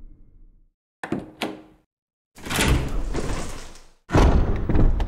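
A heavy door creaks open.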